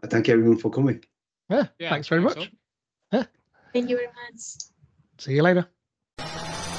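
A middle-aged man speaks cheerfully over an online call.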